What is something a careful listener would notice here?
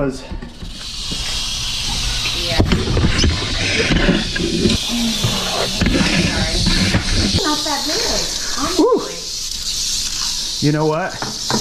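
A rattlesnake rattles with a steady, buzzing hiss.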